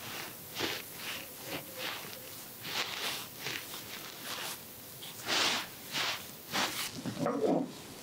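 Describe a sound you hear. Fingers rub and scratch close to the ear, crackling loudly.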